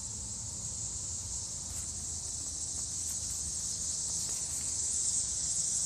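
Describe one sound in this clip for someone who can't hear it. Footsteps scuff on grass and pavement.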